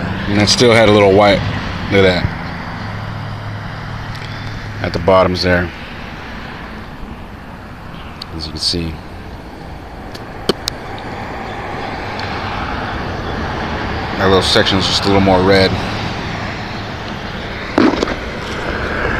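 A man talks close by, in short bursts.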